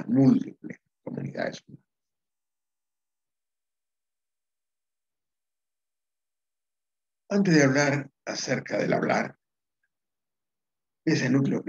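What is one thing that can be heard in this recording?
An elderly man speaks calmly over an online call, pausing between phrases.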